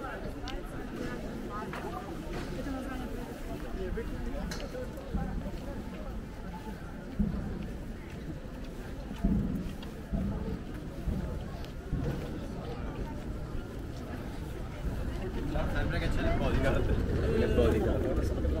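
A crowd of people chatters around, close by.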